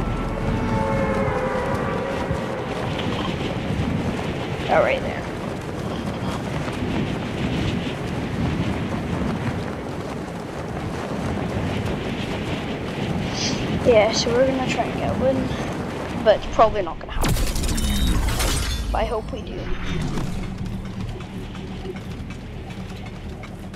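Wind rushes steadily past a gliding character.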